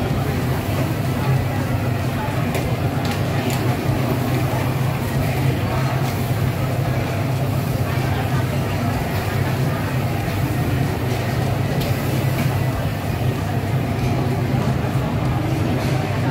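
Noodles sizzle and hiss loudly in a hot wok.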